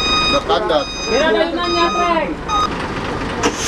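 Men talk excitedly nearby.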